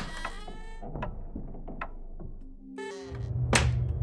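A door shuts with a soft thud.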